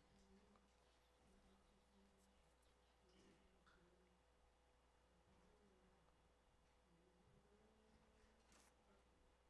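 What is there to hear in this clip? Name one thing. A man speaks softly and calmly in a room.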